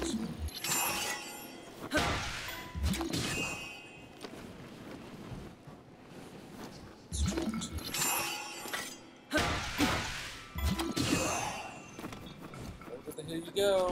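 Magical game effects crackle and chime.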